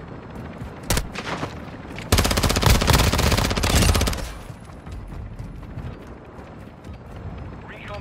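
A helicopter's rotor thuds nearby.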